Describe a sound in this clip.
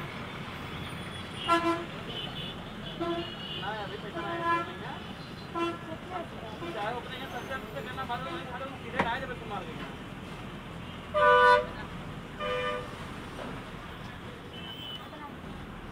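Traffic rumbles steadily along a busy street.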